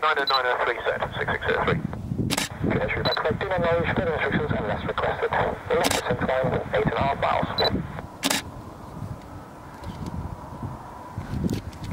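A jet airliner roars low overhead on approach.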